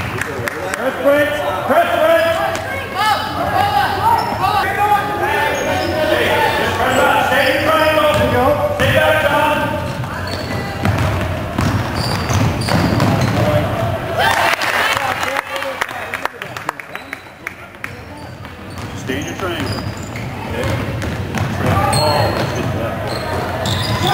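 Sneakers squeak on a hardwood floor in a large echoing gym.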